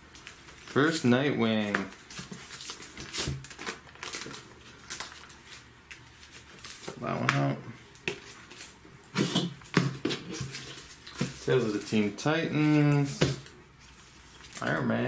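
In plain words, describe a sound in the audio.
Plastic sleeves crinkle and rustle as they are handled.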